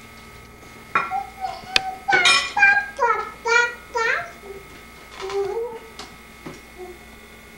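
A woman talks to a baby nearby in a high, sing-song voice.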